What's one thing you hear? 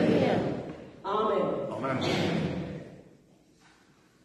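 A woman speaks calmly into a microphone in an echoing room.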